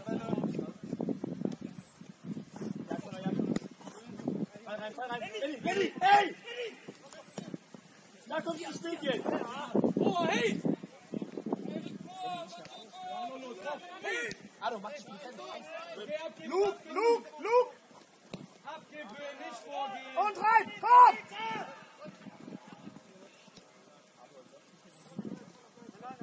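Young men shout to each other on an open pitch, heard from a distance.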